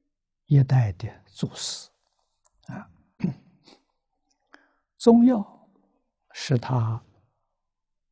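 An elderly man speaks calmly close to a microphone, as if lecturing, with pauses between phrases.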